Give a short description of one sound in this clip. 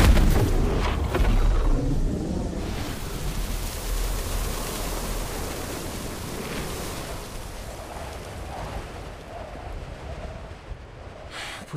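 A roaring rush of energy fills the air and slowly fades.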